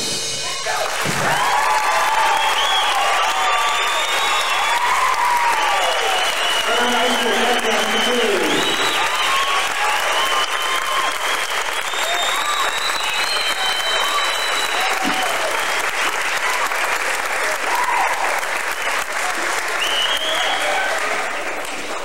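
A crowd of men and women cheers and whoops.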